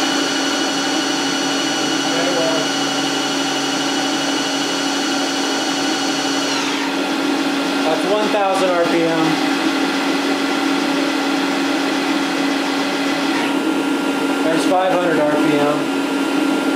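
A machine hums and whines steadily, its tones shifting now and then.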